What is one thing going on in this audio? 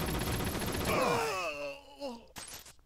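A falling whistle sound effect drops in pitch.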